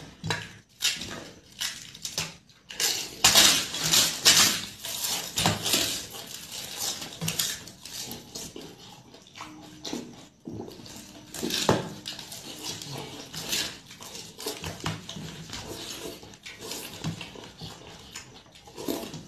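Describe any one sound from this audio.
Fingers squish and mash soft food on a metal plate.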